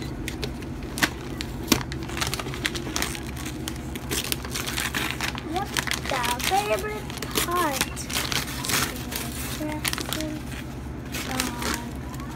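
Plastic wrapping crinkles and rustles as a toy box is unwrapped.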